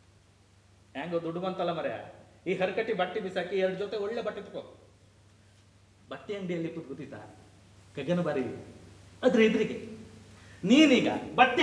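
A man speaks forcefully, his voice echoing slightly.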